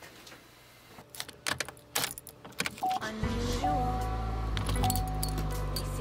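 Keys jingle and click in a car ignition.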